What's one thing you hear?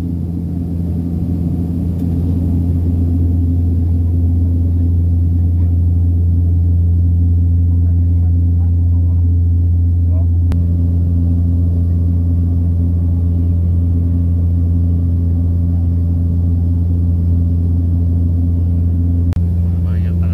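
A small aircraft's propeller engine drones loudly and steadily.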